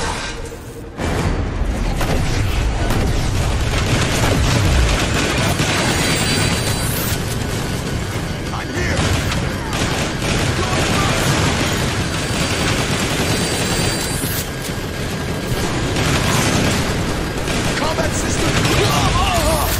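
Energy guns fire in rapid bursts.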